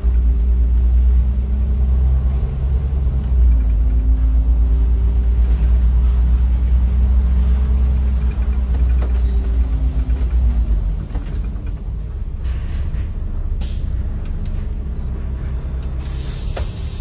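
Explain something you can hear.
A bus engine hums low and steady as the bus drives.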